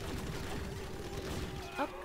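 A tank fires a buzzing laser beam.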